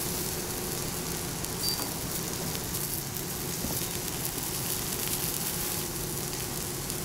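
Meat sizzles steadily on a hot pan.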